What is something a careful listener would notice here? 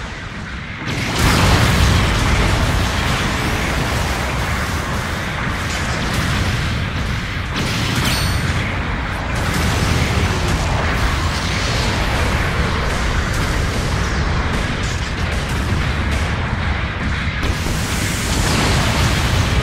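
Gunfire crackles and explosions boom.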